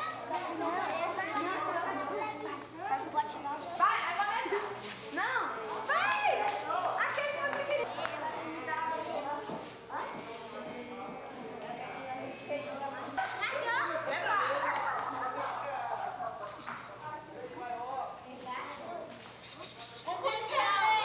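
Children chatter and murmur nearby.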